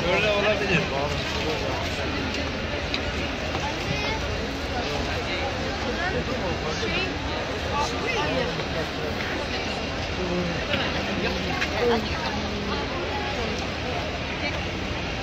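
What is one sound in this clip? A large crowd of men and women murmurs and chatters all around, outdoors.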